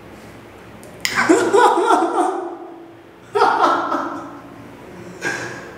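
A young man laughs loudly close by.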